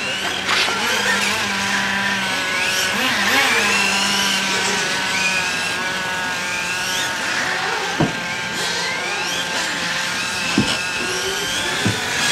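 Small electric motors whine high, rising and falling as toy race cars speed past.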